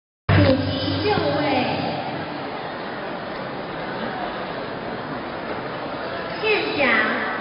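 A man speaks through a loudspeaker, echoing in the hall.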